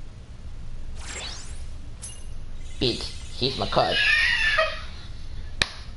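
A bright magical chime sparkles and rises in pitch.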